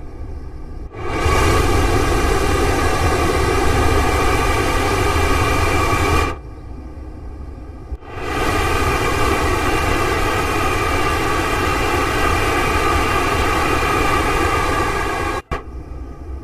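A train roars loudly as it speeds along the rails.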